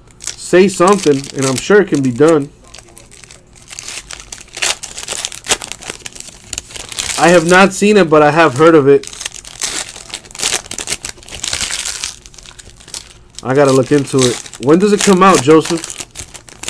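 Foil wrappers crinkle and rustle as they are torn open.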